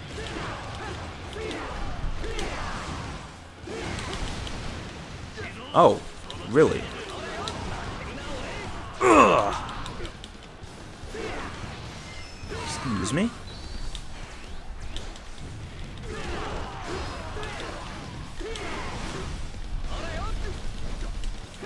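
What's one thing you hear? Soldiers cry out and groan in a crowded fight.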